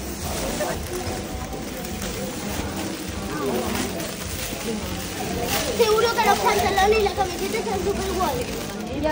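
A woman talks with the children.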